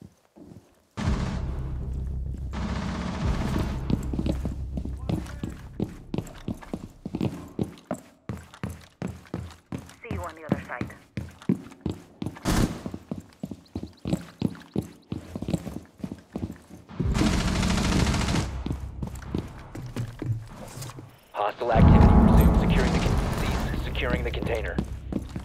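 Footsteps tread quickly on hard floors.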